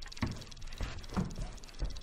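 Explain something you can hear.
Footsteps in sneakers thud on a wooden floor.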